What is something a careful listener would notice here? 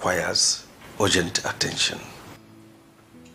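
An elderly man speaks calmly in a deep voice.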